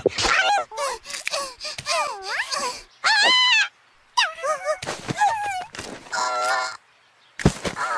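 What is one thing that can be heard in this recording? A cartoon character chatters in a high, squeaky voice with animation.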